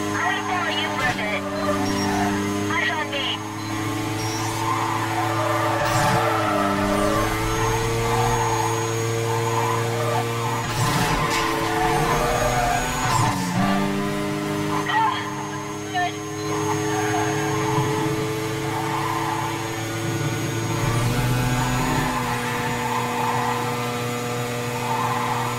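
A racing car engine roars at high revs, shifting gears as it speeds up.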